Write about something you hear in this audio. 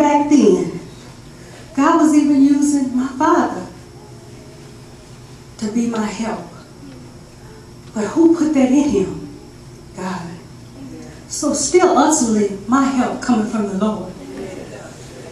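A middle-aged woman speaks with feeling through a microphone, with pauses between phrases, in an echoing hall.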